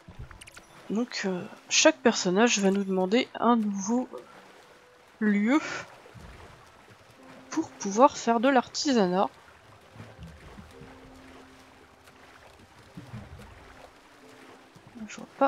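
Water splashes and churns as a small boat moves along.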